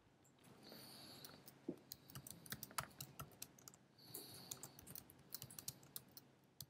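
Keys on a keyboard click rapidly as someone types.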